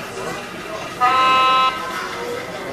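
A model train horn blows briefly.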